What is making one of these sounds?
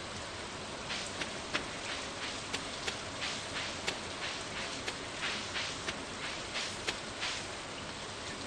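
Footsteps patter softly on a dirt path.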